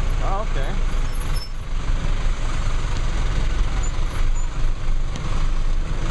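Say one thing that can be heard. A bus engine rumbles close by.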